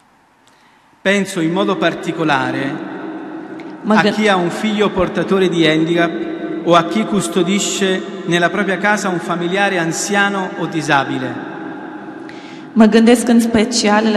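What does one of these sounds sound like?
A congregation sings together in a large echoing hall.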